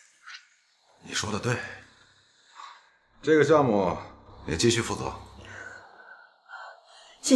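A man speaks calmly up close.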